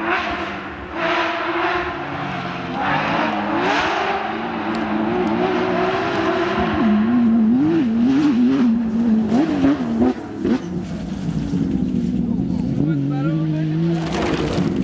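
A rally car engine roars and revs hard as it approaches and passes.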